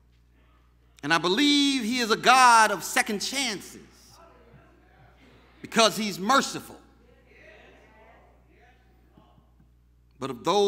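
A man preaches with animation into a microphone in an echoing hall, in bursts with pauses.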